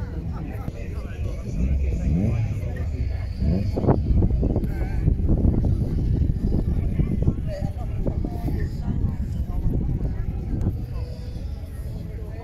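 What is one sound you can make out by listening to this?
A crowd of people chatters in the distance.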